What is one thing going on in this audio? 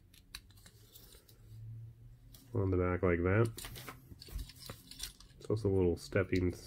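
Small plastic parts click and tap together.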